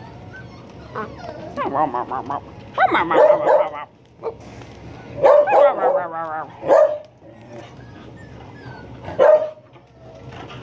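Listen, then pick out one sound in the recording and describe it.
Puppies whine and yelp close by.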